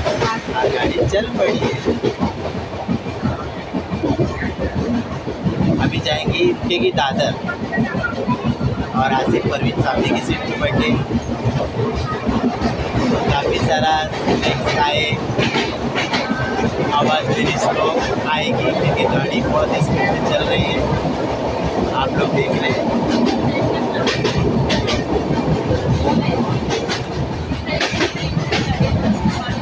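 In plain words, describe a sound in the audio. A train rumbles and rattles along its tracks.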